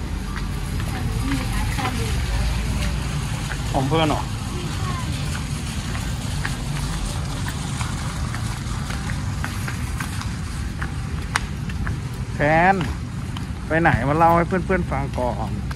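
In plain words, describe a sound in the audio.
Footsteps patter on a hard walkway.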